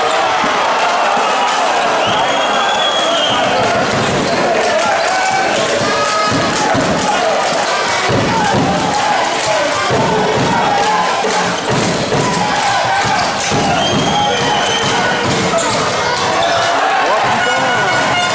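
A large crowd cheers and chatters in an echoing arena.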